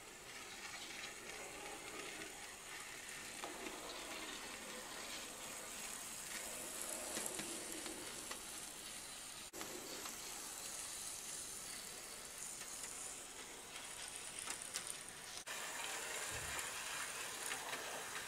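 A small model train rumbles and clatters along its track.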